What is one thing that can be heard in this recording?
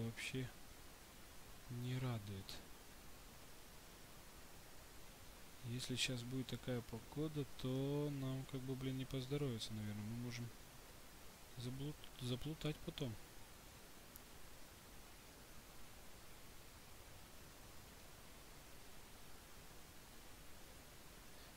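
Wind blows steadily outdoors with falling snow.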